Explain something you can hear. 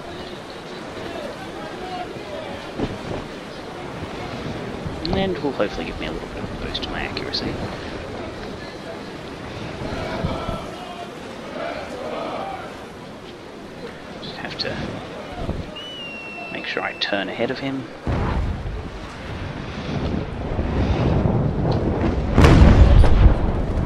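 Waves wash against a wooden ship's hull.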